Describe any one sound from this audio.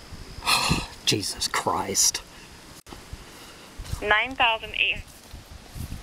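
A man speaks close by in short phrases.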